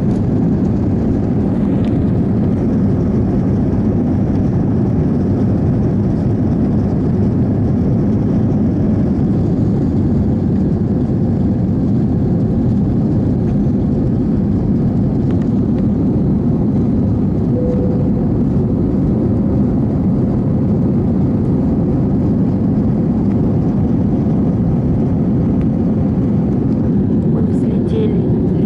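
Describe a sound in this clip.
A jet airliner's engines roar steadily, heard from inside the cabin.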